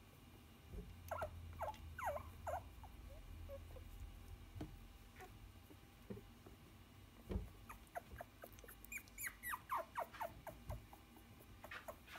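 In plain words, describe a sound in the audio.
Puppies whimper and squeak up close.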